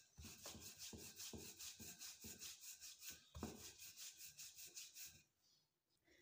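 A rolling pin rolls over dough with soft rhythmic thumps.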